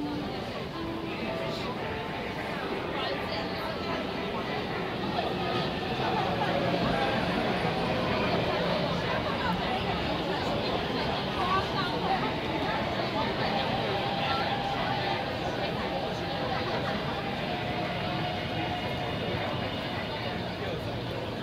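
Many footsteps shuffle across a hard floor.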